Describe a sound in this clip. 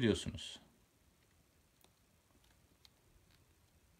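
Buttons on a remote control click softly.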